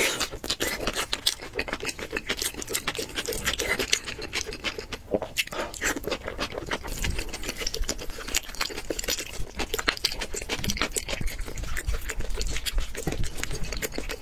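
A young man chews and slurps food loudly and close by.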